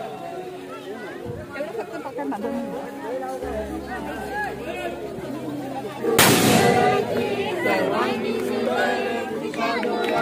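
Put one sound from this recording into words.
A group of men and women chant together.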